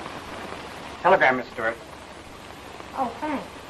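A woman speaks calmly on an old, hissy recording.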